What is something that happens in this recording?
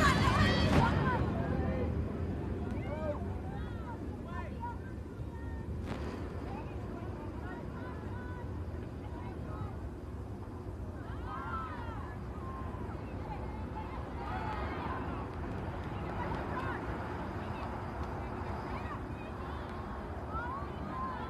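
Young women players call out to each other in the distance.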